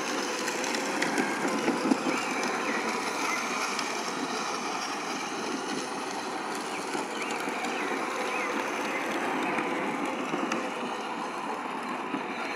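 Electric motors of toy ride-on vehicles whir steadily.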